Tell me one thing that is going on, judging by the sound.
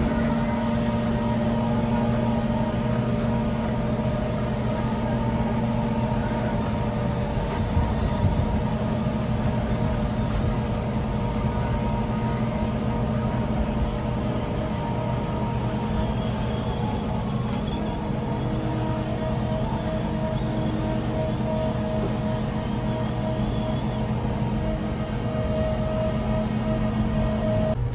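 A tractor engine hums steadily nearby.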